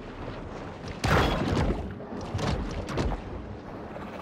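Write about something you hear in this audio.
A shark bites and thrashes with sudden splashing bursts.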